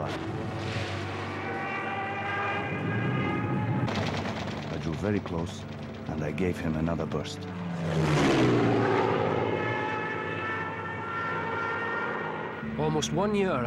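Propeller plane engines drone loudly as planes fly past.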